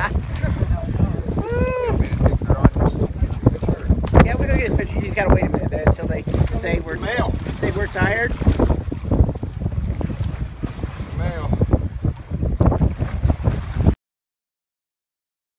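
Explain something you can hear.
Water splashes against a boat.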